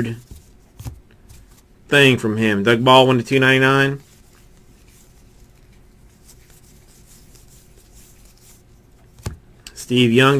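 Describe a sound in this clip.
Stiff trading cards rustle and flick as hands shuffle through them.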